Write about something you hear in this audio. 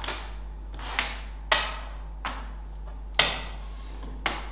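Toy blocks clack on a table.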